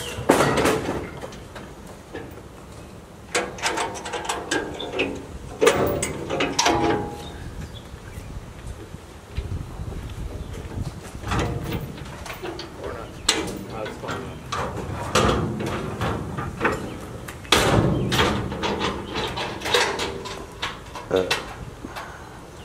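Junk and debris crash and clatter into a metal truck bed.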